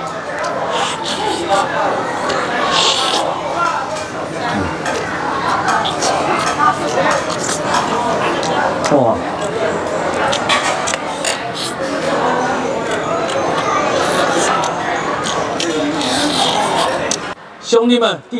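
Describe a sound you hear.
A crowd of people chatters in the background.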